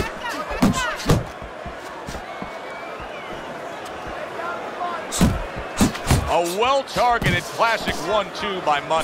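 A large crowd murmurs in an arena.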